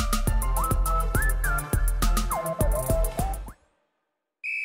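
Upbeat dance music plays from a video game.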